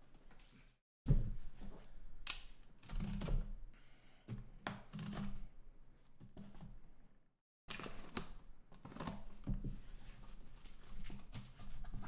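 Cardboard scrapes and thumps as a box is handled on a table.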